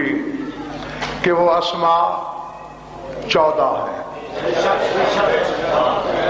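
A man speaks passionately into a microphone, his voice ringing through loudspeakers.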